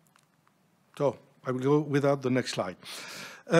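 An elderly man speaks into a microphone in a calm, measured voice.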